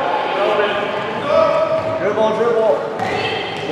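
Young girls call out to each other in an echoing hall.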